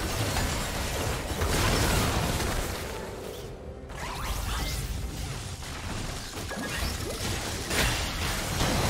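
Video game spell effects whoosh and crackle in a fast fight.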